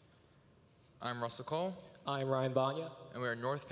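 A young man speaks into a microphone in a large hall.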